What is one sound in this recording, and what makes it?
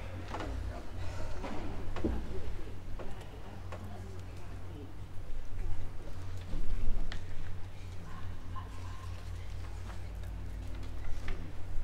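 A low murmur of people stirring fills a large echoing hall.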